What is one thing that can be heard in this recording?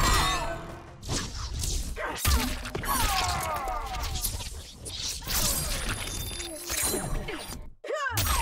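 Blows and slashes land with heavy impacts.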